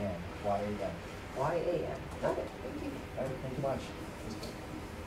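A man speaks calmly to a small group.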